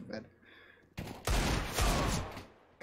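Gunshots ring out in quick bursts.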